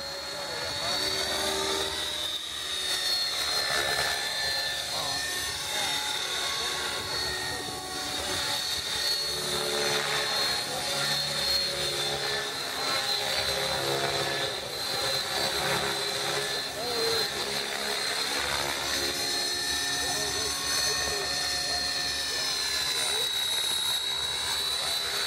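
An electric radio-controlled model helicopter whines as it performs aerobatic manoeuvres.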